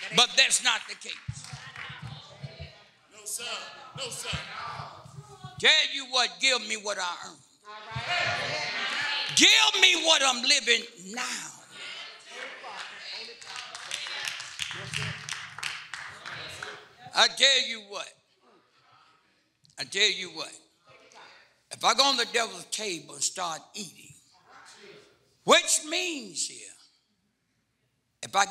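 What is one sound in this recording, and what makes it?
A man preaches with animation into a microphone, his voice ringing in a large room.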